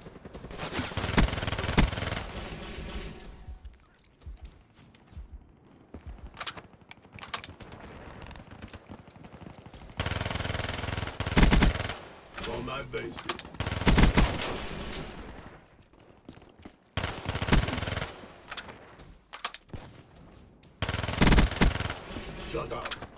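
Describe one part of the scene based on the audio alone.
A video game submachine gun fires in rapid bursts.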